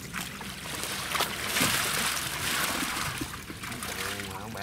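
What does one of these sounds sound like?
Water splashes and pours.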